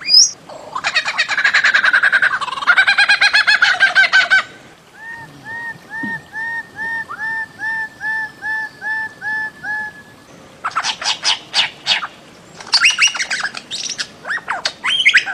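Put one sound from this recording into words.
A bird calls loudly with rapid, repeated notes and short rising whistles.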